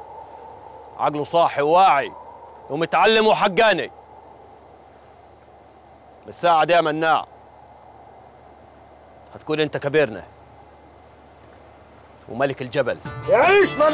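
A man speaks forcefully and with emotion, close by.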